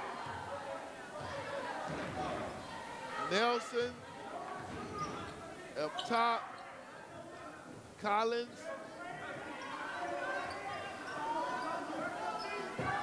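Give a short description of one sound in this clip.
A crowd murmurs and chatters in an echoing gym.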